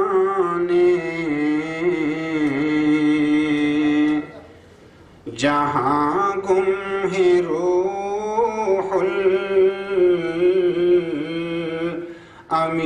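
A middle-aged man chants in a long, melodic voice through a microphone and loudspeakers, pausing briefly for breath.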